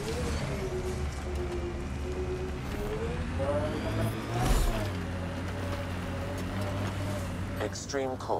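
A vehicle engine hums and whines, its pitch rising and falling.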